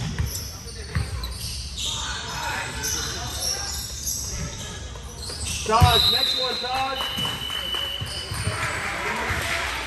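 Spectators chatter in a large echoing gym.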